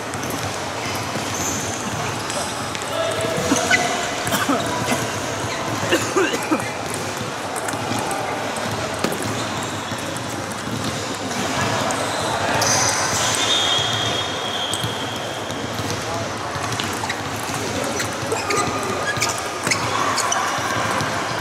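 A table tennis ball clicks back and forth off paddles and a table in a large echoing hall.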